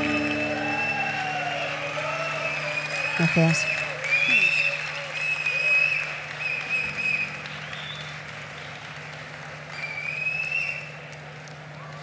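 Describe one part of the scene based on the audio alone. A woman sings through loudspeakers.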